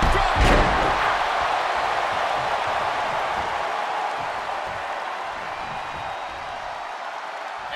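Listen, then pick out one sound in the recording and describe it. A large crowd cheers and roars in a big arena, slowly fading.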